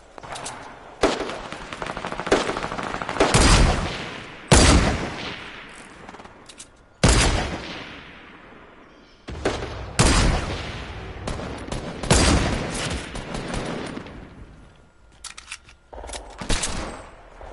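Loud gunshots boom and echo, one at a time.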